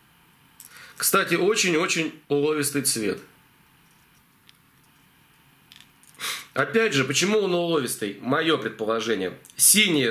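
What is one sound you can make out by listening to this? A man speaks calmly close to the microphone, in short bursts with pauses.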